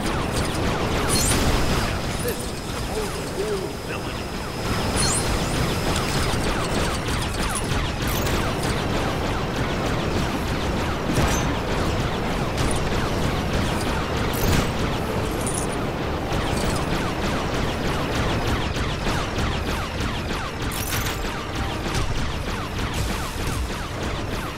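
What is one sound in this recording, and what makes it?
Laser blasts fire rapidly, over and over.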